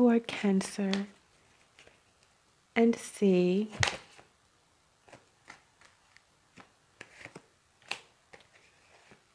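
Playing cards slap and rustle as they are laid down on a table.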